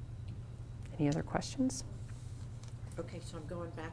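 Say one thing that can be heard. A woman speaks calmly to a room.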